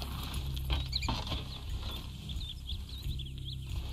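A horse-drawn carriage rolls over rough ground.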